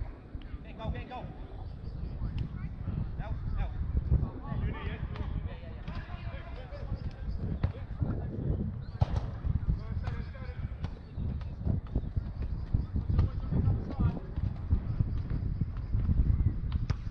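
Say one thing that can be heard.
Young men shout to each other at a distance outdoors.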